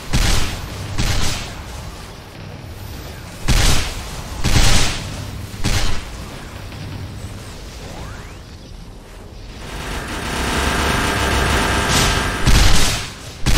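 Game skill attacks burst and boom in quick bursts.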